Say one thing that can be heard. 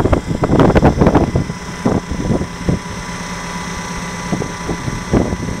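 A hydraulic pump hums steadily.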